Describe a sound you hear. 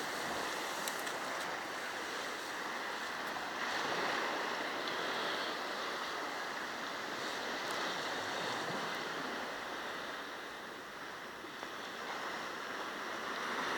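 Small waves lap gently against a stone edge.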